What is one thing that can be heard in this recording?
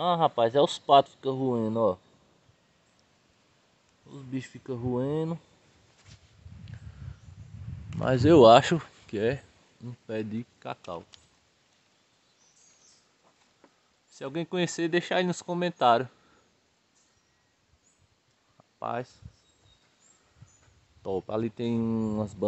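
A man talks close by, calmly explaining, in short bursts with pauses.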